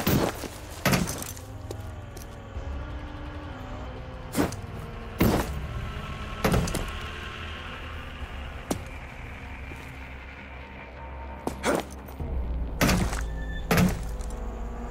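Heavy footsteps thud on metal.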